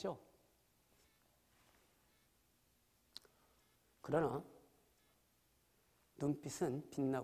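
A man speaks calmly through a microphone in a large hall, with pauses.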